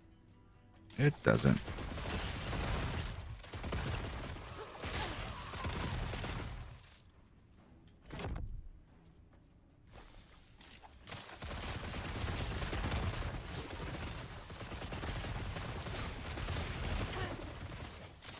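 Fiery blasts and crackling bursts of magic go off in quick succession.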